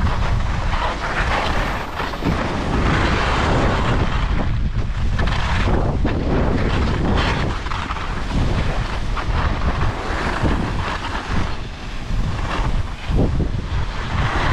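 Skis scrape and hiss over packed snow close by.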